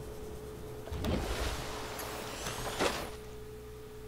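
Water splashes as a submersible breaks through the surface.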